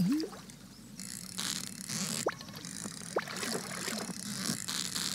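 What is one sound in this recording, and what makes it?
A fishing reel whirs in bursts.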